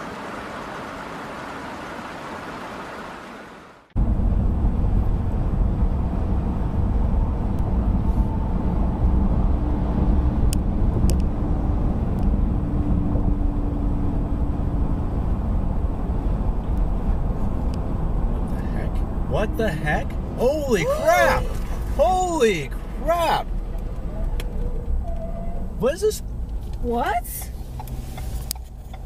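A car's tyres roar on asphalt at highway speed.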